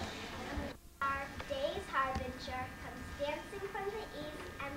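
A young girl speaks clearly and calmly nearby.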